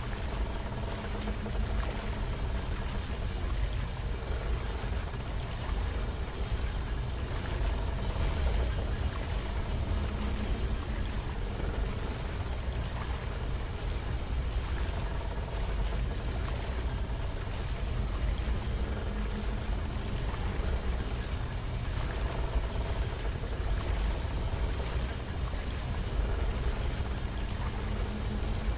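Magic spells hum and crackle steadily.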